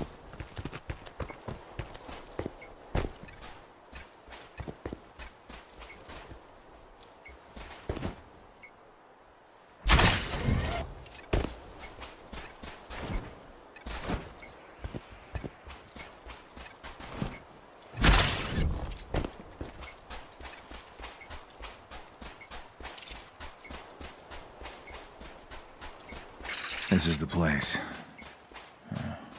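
Footsteps crunch quickly over gravel and dry ground.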